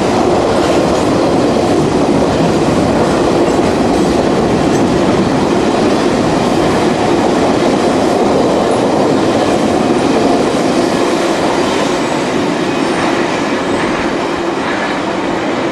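Freight car wheels squeal and rattle over rail joints.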